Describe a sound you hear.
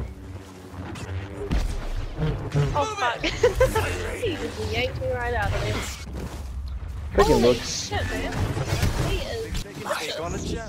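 Lightsabers hum and clash with sharp buzzing strikes.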